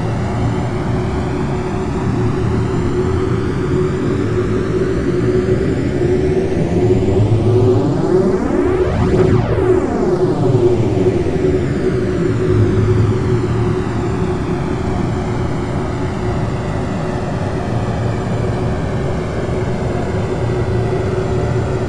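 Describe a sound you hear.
Jet engines drone steadily at low power.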